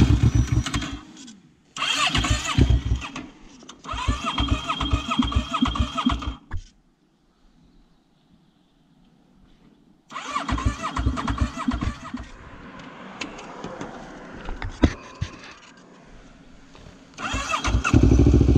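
A quad bike engine revs in short bursts.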